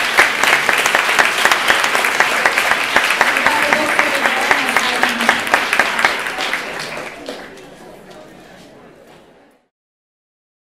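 An audience applauds loudly in a hall, then the clapping fades away.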